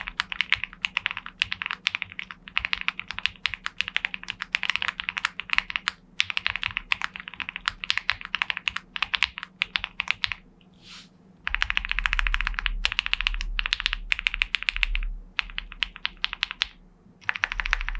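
Keys on a mechanical keyboard clack in quick, soft bursts of typing.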